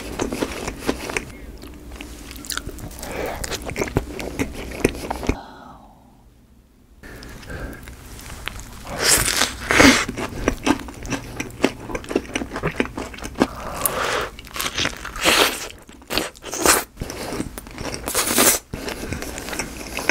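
A young man chews food noisily close to a microphone.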